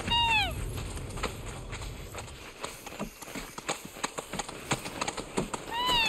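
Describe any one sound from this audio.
Clawed feet patter quickly on the ground.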